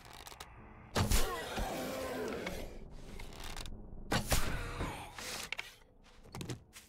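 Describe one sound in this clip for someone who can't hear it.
A zombie growls and snarls close by.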